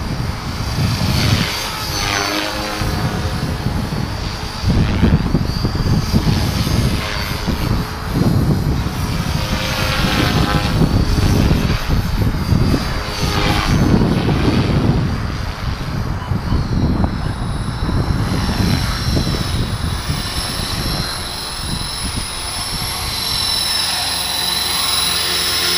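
A model helicopter's rotor whines and buzzes as it flies overhead.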